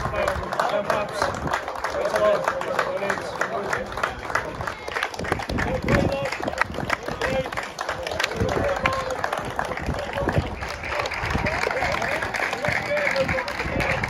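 Men and women in a crowd chat and call out nearby.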